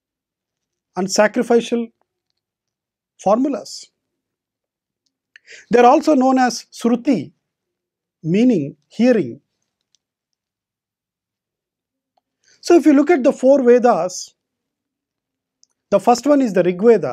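A middle-aged man speaks calmly into a close microphone, with pauses between phrases.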